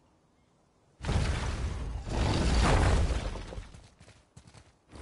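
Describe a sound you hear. Heavy stone doors grind and rumble as they are pushed open.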